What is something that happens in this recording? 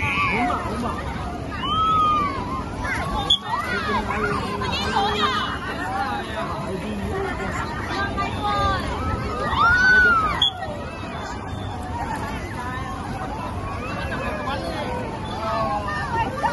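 A crowd of children and adults chatter and shout excitedly outdoors.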